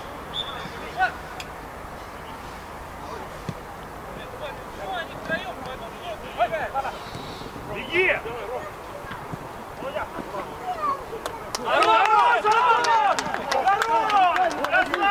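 Young players shout to each other across an outdoor pitch.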